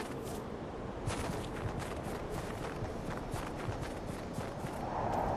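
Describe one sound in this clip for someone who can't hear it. Footsteps crunch quickly over snow and grass.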